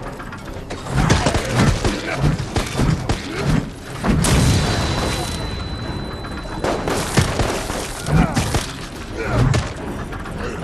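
Heavy blows thud hard against a body, one after another.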